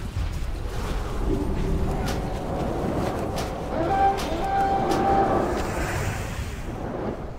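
Game combat sounds clash and ring out.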